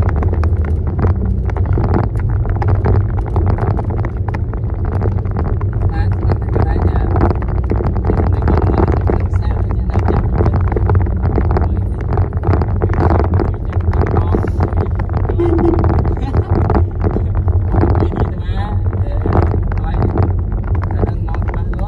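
A car's tyres rumble over a rough, uneven road, heard from inside the car.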